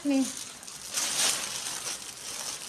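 A plastic wrapper rustles as it is waved.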